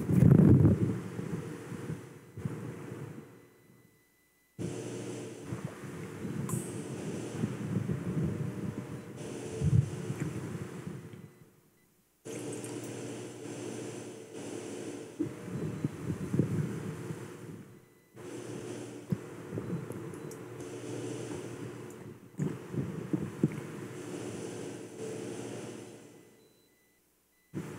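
Metal vessels clink softly against each other.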